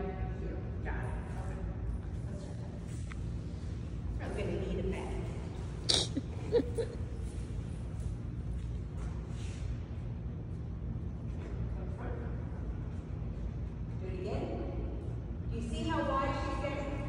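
A woman talks to a dog in a large echoing hall.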